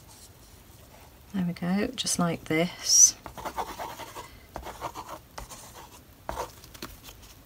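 A plastic bottle rubs and presses over paper.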